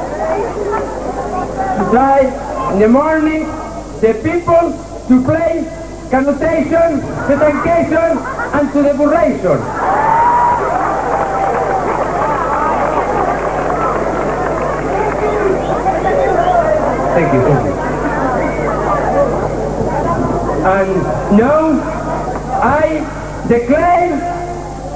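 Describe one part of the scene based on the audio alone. A man reads out through a microphone and loudspeakers.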